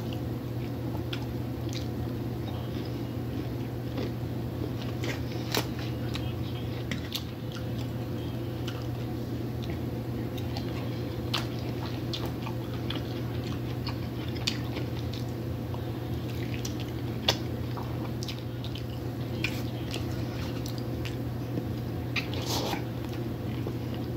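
A fork clinks and scrapes against a metal dish.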